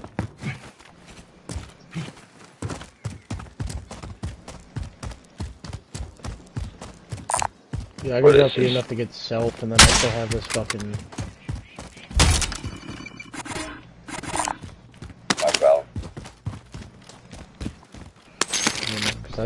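Quick footsteps run over dirt and grass.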